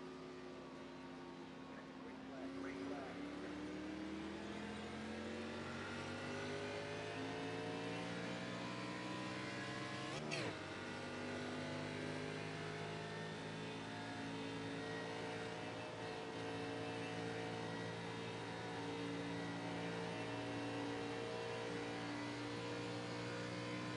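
A race car engine roars steadily, rising in pitch as it speeds up.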